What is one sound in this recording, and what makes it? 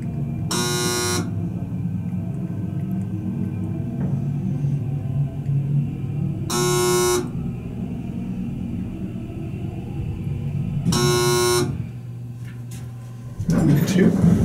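An elevator car hums steadily as it moves through the shaft.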